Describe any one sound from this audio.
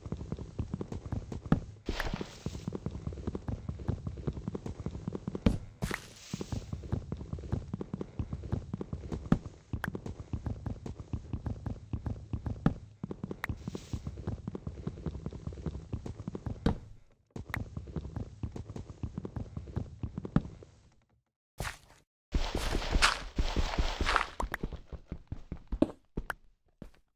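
Blocks of wood and earth are struck with rapid, repeated dull knocks.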